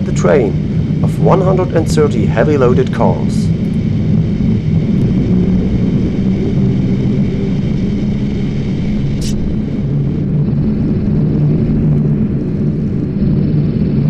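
Electric locomotives rumble and hum steadily as they roll slowly past.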